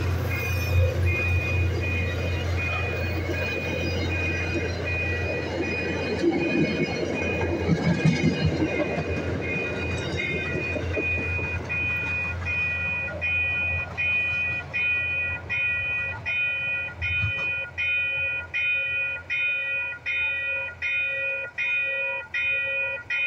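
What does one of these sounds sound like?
A crossing bell rings quickly and steadily.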